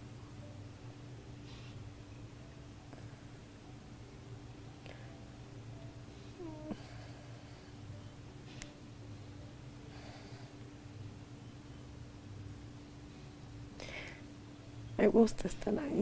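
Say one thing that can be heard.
A woman breathes heavily and snores softly close by.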